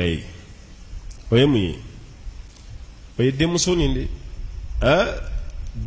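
An elderly man speaks slowly and with emphasis into a microphone, pausing between phrases.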